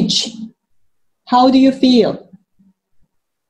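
A woman speaks with animation through a microphone, as if on an online call.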